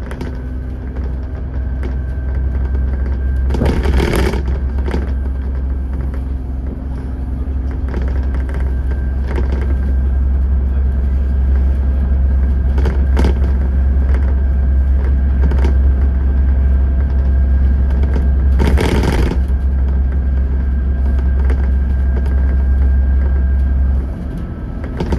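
A heavy vehicle's engine drones steadily, then drops away.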